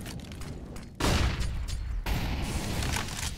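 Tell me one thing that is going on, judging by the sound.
A grenade bursts with a sharp bang.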